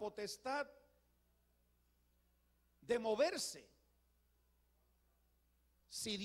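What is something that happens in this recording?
An elderly man preaches with emphasis into a microphone, pausing between phrases.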